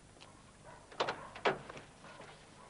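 A car boot thumps shut.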